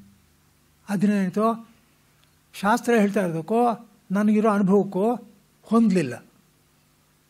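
An elderly man chants in short, drawn-out phrases.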